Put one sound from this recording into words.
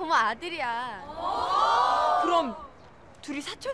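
A young woman yawns loudly.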